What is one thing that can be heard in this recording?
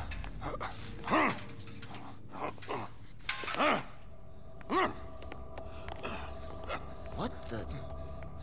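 An elderly man speaks in a rasping, sneering voice.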